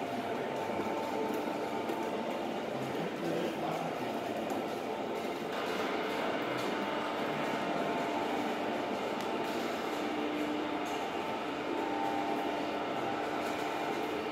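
An electric oil mill machine hums and grinds steadily as its pestle churns seeds in a stone mortar.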